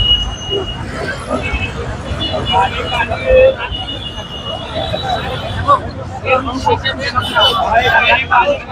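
A crowd of men talks and murmurs outdoors.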